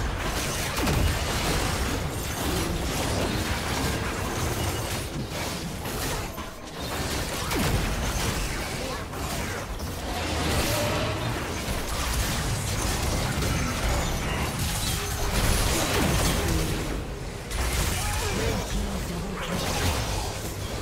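Fantasy battle effects clash, whoosh and burst in quick succession.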